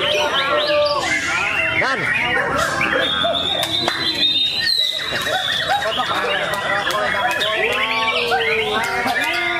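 A songbird sings a loud, rapid stream of varied whistles and chirps close by.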